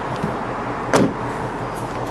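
A hand pats a car's trunk lid with a dull thump.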